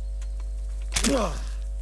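A young man cries out briefly into a headset microphone.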